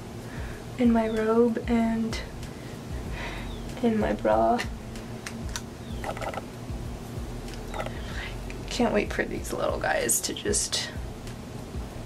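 A young woman speaks calmly and close to a microphone.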